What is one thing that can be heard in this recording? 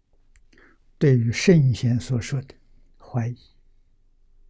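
An elderly man speaks slowly and calmly into a close microphone.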